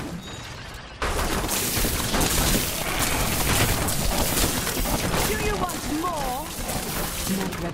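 Video game lightning crackles loudly.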